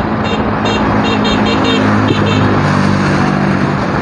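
A small motor vehicle's engine runs nearby.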